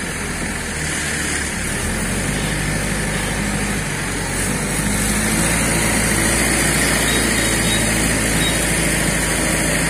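A motorcycle engine runs close by.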